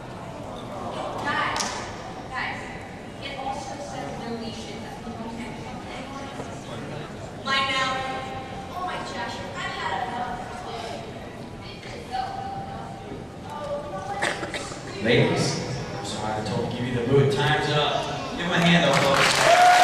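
Young women speak and act out lines loudly on a stage in a large hall.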